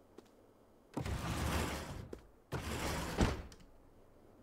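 A sliding wardrobe door rumbles open and then shut.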